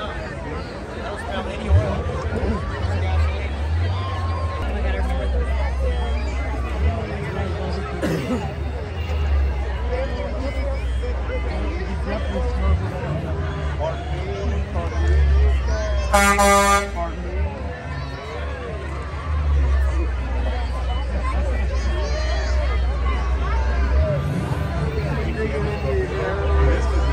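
A crowd of people chatters outdoors throughout.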